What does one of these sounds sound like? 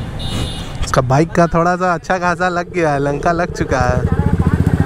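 A motorcycle engine revs sharply up and down.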